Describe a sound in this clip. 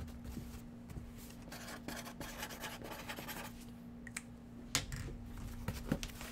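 A marker squeaks as it writes on a cardboard box.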